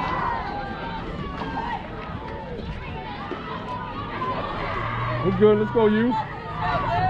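People chatter and call out nearby outdoors.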